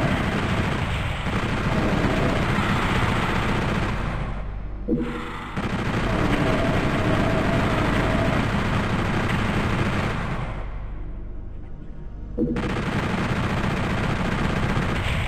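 A rapid-fire gun shoots in long, loud bursts.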